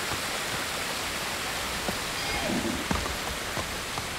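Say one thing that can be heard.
Hooves thud on rock as a horse walks.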